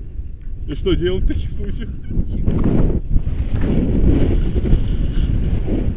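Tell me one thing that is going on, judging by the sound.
Wind buffets the microphone during a paraglider flight.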